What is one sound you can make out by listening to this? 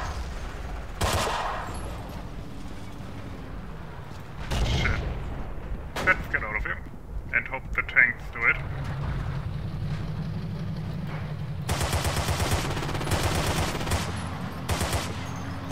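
A rifle fires loud shots in quick bursts.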